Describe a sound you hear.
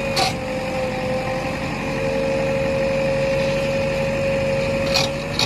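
A diesel engine drones steadily close by.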